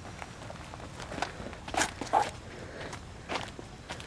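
Footsteps run on pavement outdoors.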